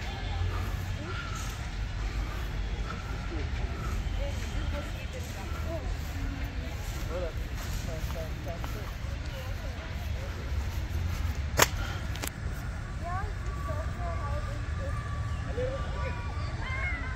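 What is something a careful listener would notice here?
Footsteps brush softly across grass.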